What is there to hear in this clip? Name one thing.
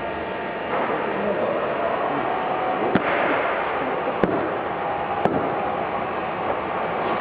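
A printing machine hums and whirs steadily.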